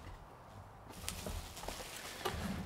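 Bubble wrap crinkles.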